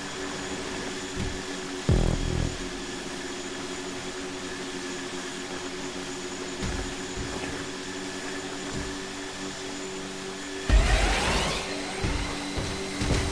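Boats rush through choppy water, and spray hisses around their hulls.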